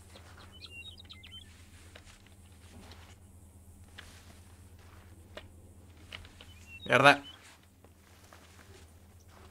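A small animal rustles through dry brush.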